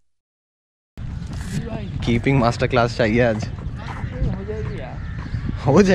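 A man talks close by, casually, outdoors.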